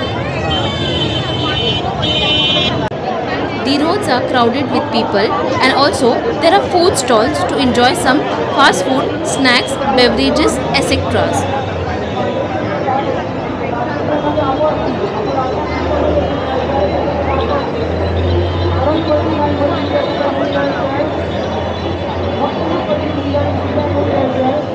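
A crowd chatters busily all around outdoors.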